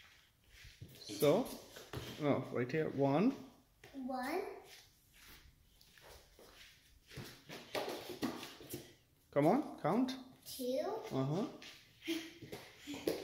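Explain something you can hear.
A young child talks with animation close by.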